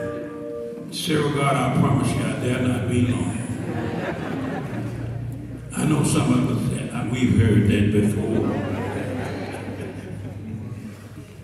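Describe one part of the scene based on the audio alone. A man preaches with animation into a microphone, heard through loudspeakers in a large hall.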